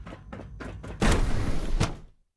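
A heavy sliding door hisses open.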